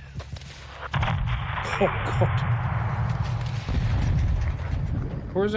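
A large explosion booms and rumbles.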